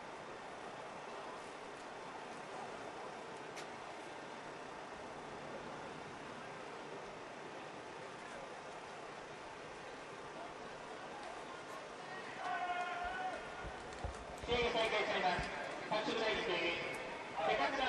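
A crowd murmurs steadily in the distance outdoors.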